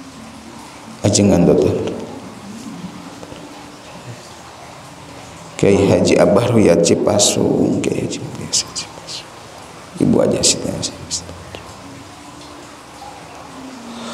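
A young man chants loudly into a microphone, heard through loudspeakers in an echoing room.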